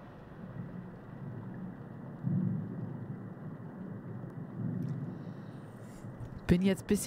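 A young woman speaks quietly through a microphone.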